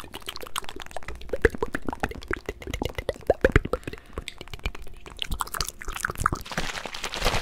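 Clicks and taps sound close up against a microphone.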